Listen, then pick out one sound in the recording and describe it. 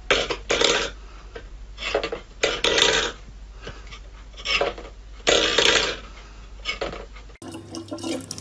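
A metal bowl scrapes and clatters on a floor.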